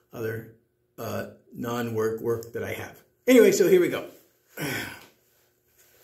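An elderly man speaks calmly close by.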